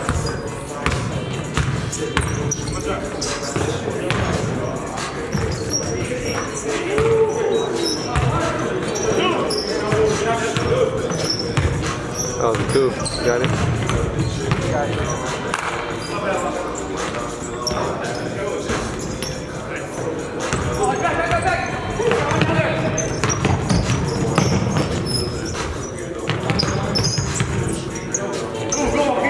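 Young men shout and call out to each other during a game.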